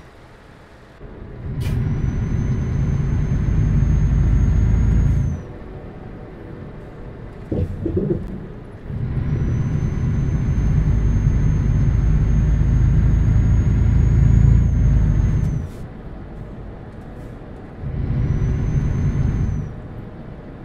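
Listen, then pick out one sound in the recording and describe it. A truck's diesel engine roars in bursts as it accelerates, then drops to a low idle.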